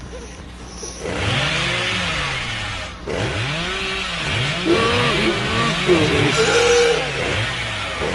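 A chainsaw revs loudly, its engine rising and falling.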